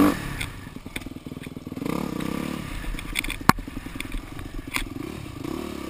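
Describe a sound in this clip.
Knocks and rattles sound as a motorbike bumps over a rough dirt trail.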